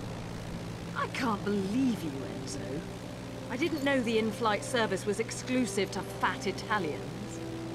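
A young woman speaks calmly and mockingly.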